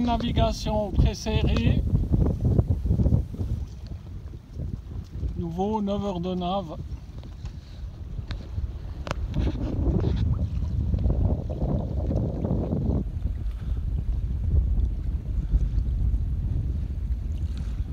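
Water splashes against the hull of a moving sailboat.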